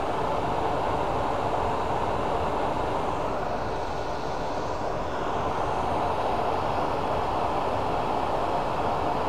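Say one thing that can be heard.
A lathe motor hums steadily as the spindle spins.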